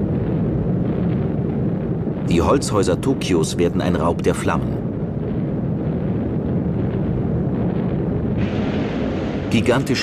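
Bombs explode with deep rumbling booms.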